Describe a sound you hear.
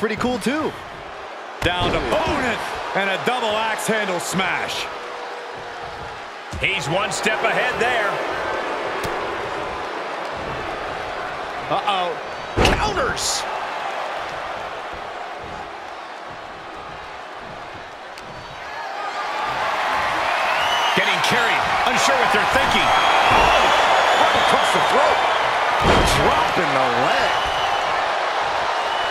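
A crowd cheers in a large arena, growing louder partway through.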